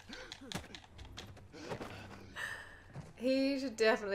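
A young woman laughs into a headset microphone.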